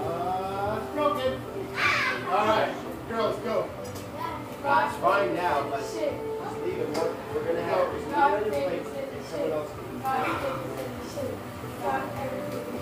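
Girls talk and exclaim excitedly close by.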